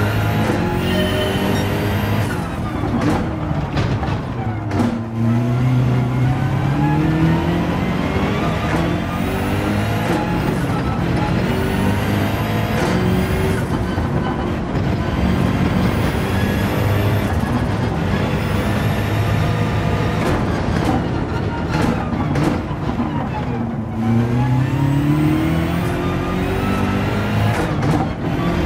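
A racing car engine roars, revving up through the gears and dropping as it shifts and brakes.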